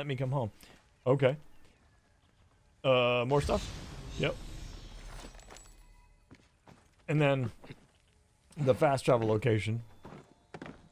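A man speaks with animation into a close microphone, in short bursts.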